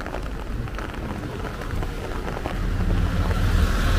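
Scooter engines hum as they pass by on a wet road.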